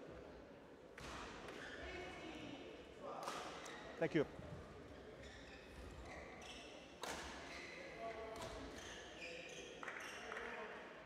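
Badminton rackets strike a shuttlecock back and forth in a large echoing hall.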